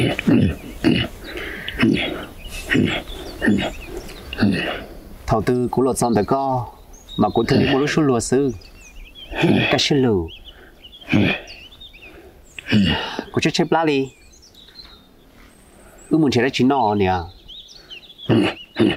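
A young man talks calmly nearby.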